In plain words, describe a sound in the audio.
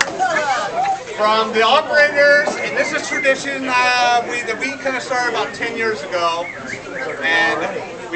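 A man speaks loudly to a group.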